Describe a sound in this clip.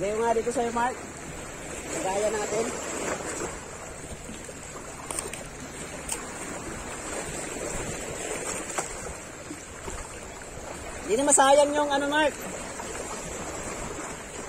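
Wind blows across the open water.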